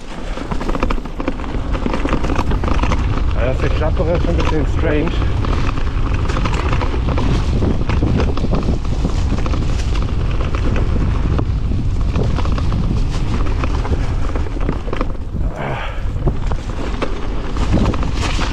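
Wind buffets loudly, as if rushing past.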